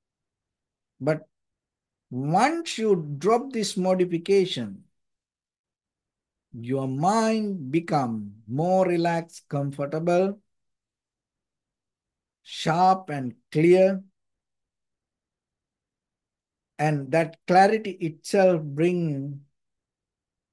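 A man speaks calmly with pauses, heard close through a microphone on an online call.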